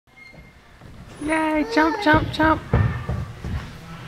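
A toddler's feet thump softly on a bouncy mat.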